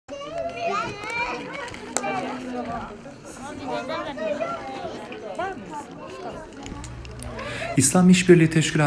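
Children and women chatter and call out in an echoing hall.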